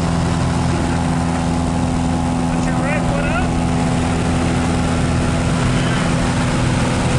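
Wind roars through an open aircraft door.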